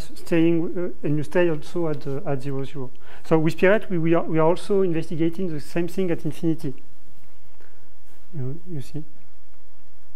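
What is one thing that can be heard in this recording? A young man speaks calmly, explaining, in a room with some echo.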